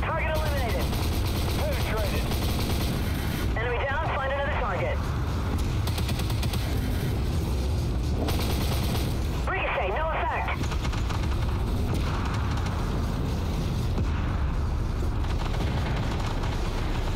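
A tank engine rumbles deeply and steadily.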